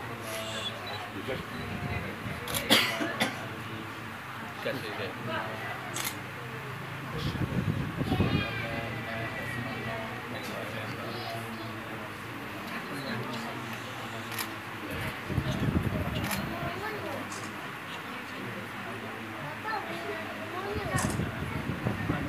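A young man speaks softly into a microphone, heard through a loudspeaker.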